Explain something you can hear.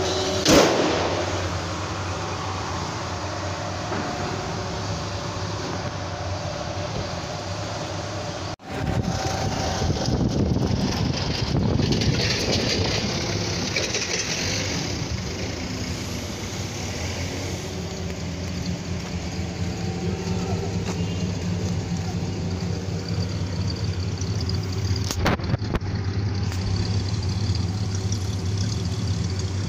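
An old car engine idles with a steady low rumble.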